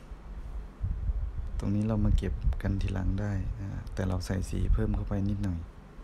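A paintbrush brushes softly across paper.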